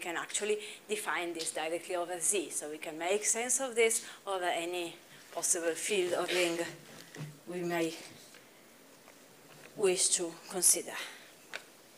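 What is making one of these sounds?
A young woman lectures calmly through a microphone in a large room.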